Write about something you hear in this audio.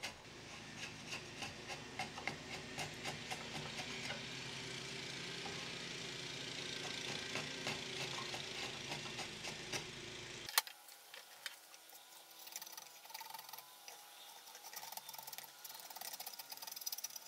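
A drawknife shaves a teak handle blank.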